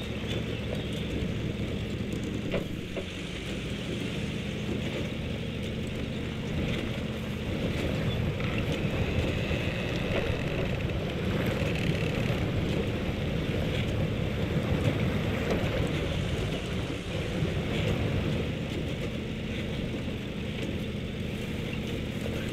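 Wooden logs knock and creak under tyres.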